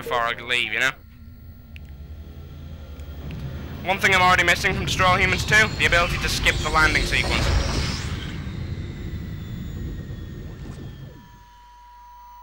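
A large hovering craft hums with a deep, low drone.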